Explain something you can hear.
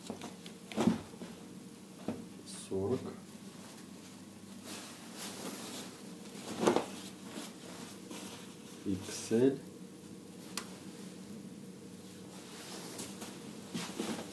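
Fabric rustles as jackets are laid down and lifted.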